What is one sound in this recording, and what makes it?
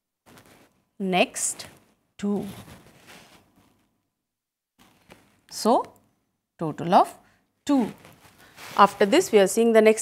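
A woman speaks calmly and clearly, as if explaining, close by.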